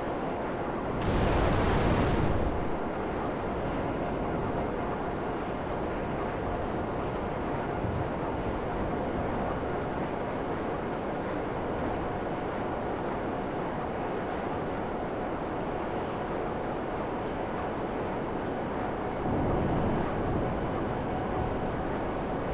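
A jet-powered motorbike roars steadily as it flies.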